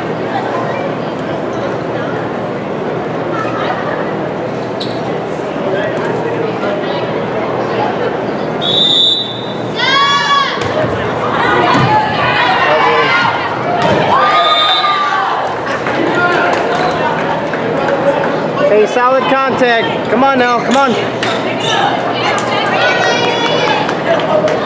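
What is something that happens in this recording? A crowd murmurs and chatters in a large echoing gym.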